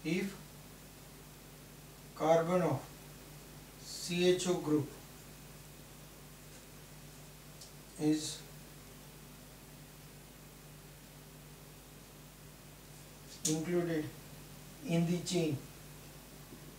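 A middle-aged man speaks calmly in short phrases nearby.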